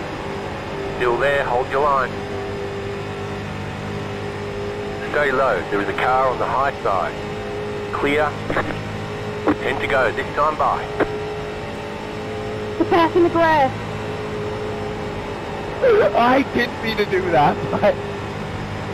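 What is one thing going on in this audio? A man speaks calmly into a close microphone in short bursts.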